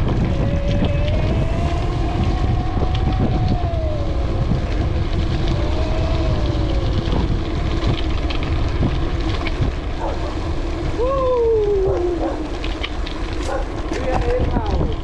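Mountain bike tyres roll downhill over a gravel path.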